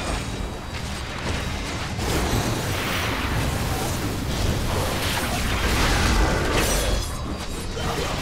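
Spell blasts and weapon strikes crash and boom in a game fight.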